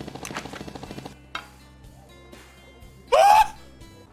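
A helicopter's rotor whirs.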